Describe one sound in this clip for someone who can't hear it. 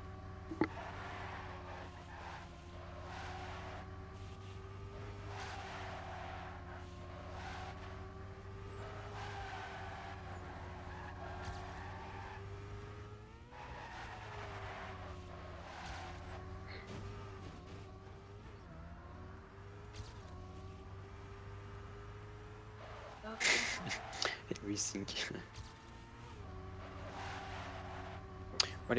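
A racing car engine whines steadily at high revs, rising and falling with gear changes.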